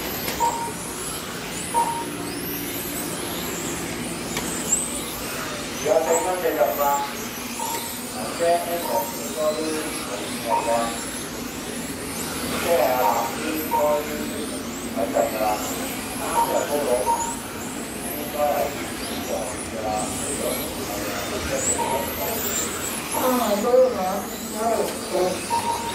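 Small electric model cars whine high as they speed past.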